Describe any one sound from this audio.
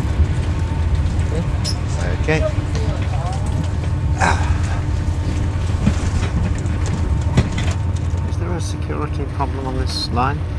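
A train rumbles along steadily with a low drone.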